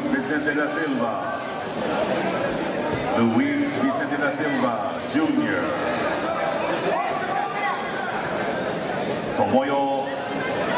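A crowd of men and women shouts and calls out loudly in a large echoing hall.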